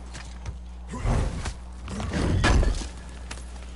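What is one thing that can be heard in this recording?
A man climbs onto a wooden boat with heavy thuds and creaks.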